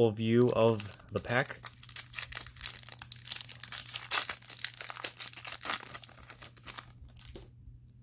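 Foil packaging crinkles and tears as hands rip it open.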